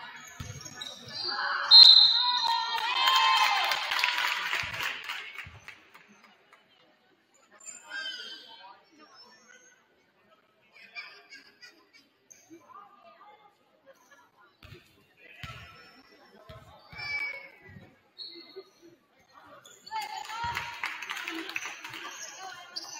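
A crowd cheers in a large echoing gym.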